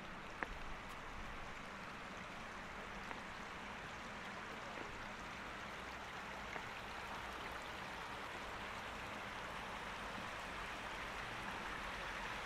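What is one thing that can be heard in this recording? A shallow stream trickles and babbles over rocks nearby, growing a little louder.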